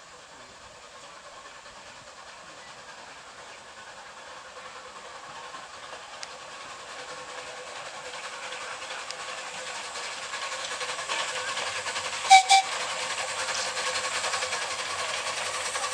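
A small train rumbles out of a tunnel, growing louder as it approaches.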